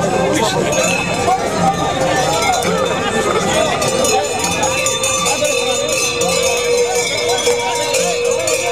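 A crowd of men and women shouts and chants loudly outdoors, close by.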